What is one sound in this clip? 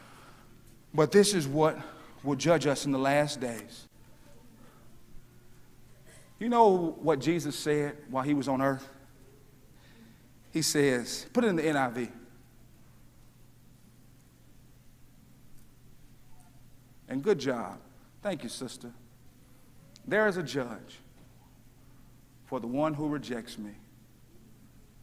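A man preaches with emphasis through a microphone, in short bursts with pauses.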